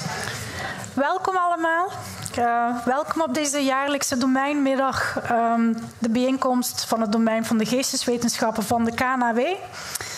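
A young woman speaks calmly into a microphone, heard through loudspeakers in a large hall.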